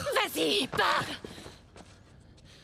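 A woman speaks urgently, close by.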